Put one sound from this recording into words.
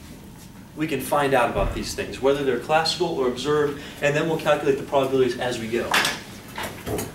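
A man speaks clearly to a room, as if lecturing.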